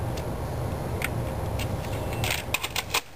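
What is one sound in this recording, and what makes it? A plastic cassette clicks and rattles as it is pushed into a player.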